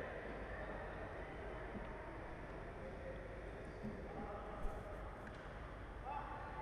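Voices of players and onlookers murmur and call out in an echoing hall.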